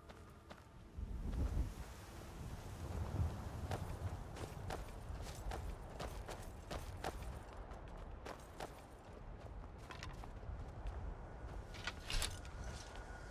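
Armoured footsteps crunch over gravel and grass.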